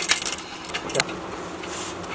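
A metal socket clinks against a bolt.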